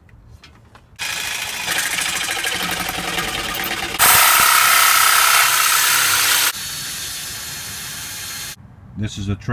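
A power saw whines loudly as it cuts through a board.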